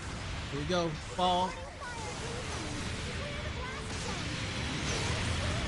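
A game mobile suit's thrusters roar as it boosts.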